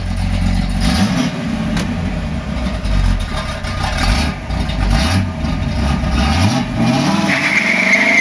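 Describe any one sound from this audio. A car engine revs up sharply several times.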